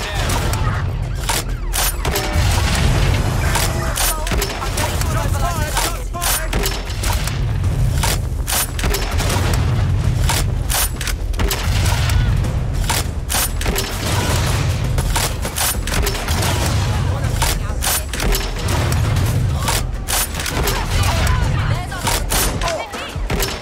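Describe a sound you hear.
Explosions boom with heavy rumbling blasts.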